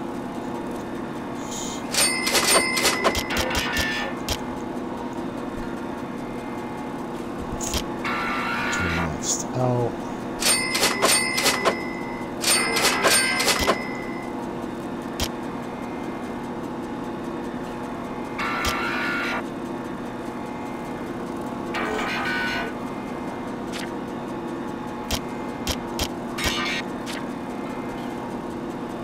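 Short electronic clicks tick as menu items are selected.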